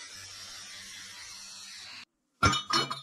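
An angle grinder whines steadily against metal.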